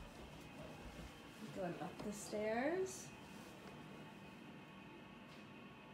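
A toddler climbs carpeted stairs with soft thumps.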